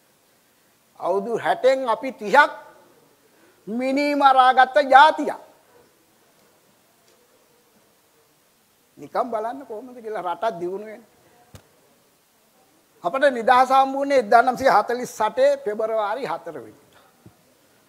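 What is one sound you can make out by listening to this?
A middle-aged man speaks with animation into a clip-on microphone, in bursts with pauses.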